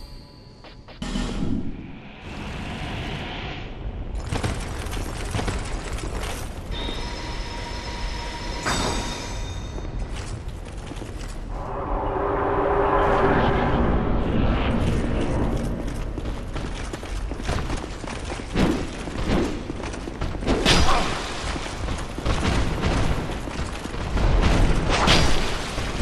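A flaming club swings and whooshes through the air.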